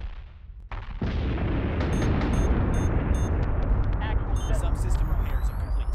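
Heavy cannons fire in a rapid, roaring barrage.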